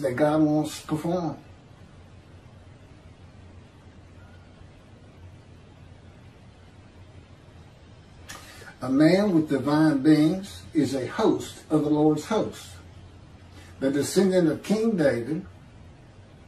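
A middle-aged man speaks calmly through a microphone on an online call.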